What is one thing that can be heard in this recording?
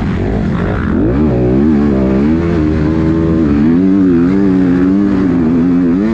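A dirt bike engine roars close by, revving up and down as it rides.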